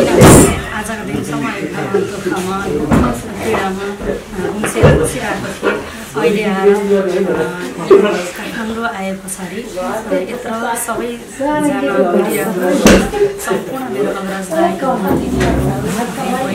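A woman speaks into a microphone close by, with animation.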